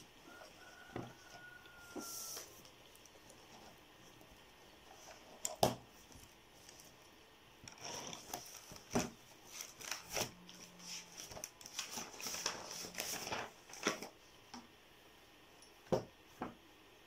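Books and notebooks thump softly onto a table.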